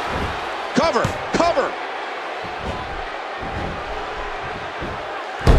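A large arena crowd cheers.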